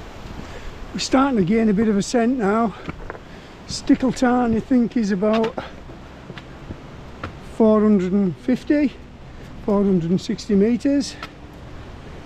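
An older man talks breathlessly and close, outdoors in wind.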